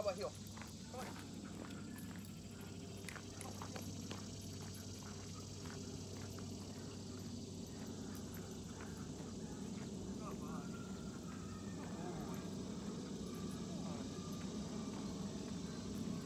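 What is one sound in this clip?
Footsteps crunch on gravel and fade into the distance.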